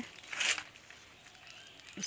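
Leaves rustle as a hand brushes through them.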